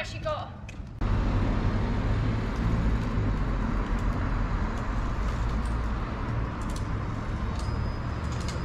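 Traffic rumbles along a street outdoors.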